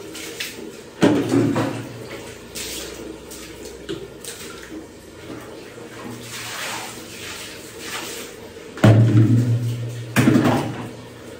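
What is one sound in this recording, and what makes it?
Objects knock and thud nearby.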